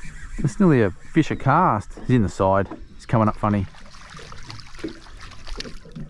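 A fishing reel clicks as it winds in line.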